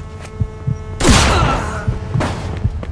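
A gunshot bangs loudly.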